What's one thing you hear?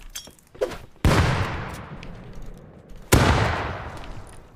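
A rifle fires loud shots that echo outdoors.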